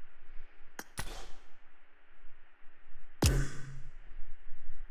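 A game interface plays short whooshing sounds as menus change.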